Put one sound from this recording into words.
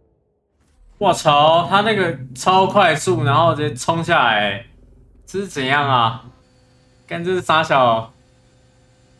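A young man talks loudly and with animation into a close microphone.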